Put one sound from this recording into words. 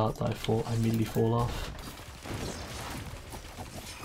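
Rapid gunshots crackle from a video game.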